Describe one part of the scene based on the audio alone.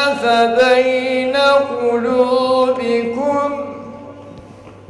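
A man chants in a long, melodic voice through a microphone, echoing in a large hall.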